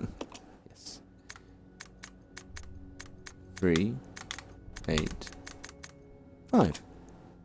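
A combination lock dial clicks as it turns.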